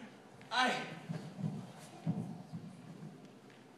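A young man speaks dramatically, heard from a distance in a large hall.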